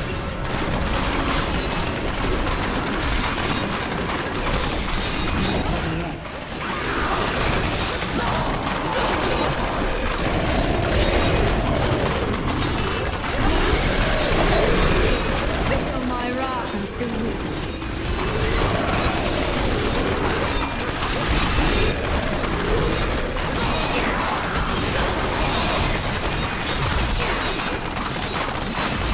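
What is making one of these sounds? Magic spells crackle and burst in rapid, constant bursts of battle.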